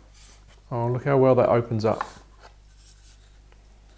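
A wooden lid slides off a small wooden box.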